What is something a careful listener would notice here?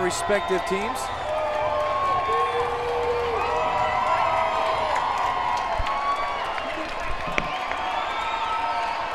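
A crowd cheers and murmurs in the stands.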